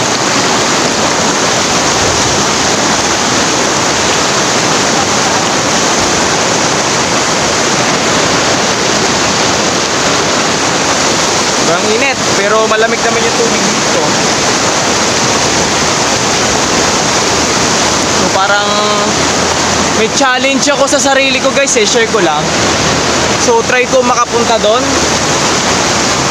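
A river rushes loudly over rocks close by.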